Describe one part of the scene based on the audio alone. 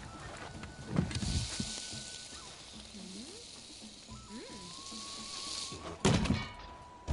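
Meat sizzles loudly on a hot platter.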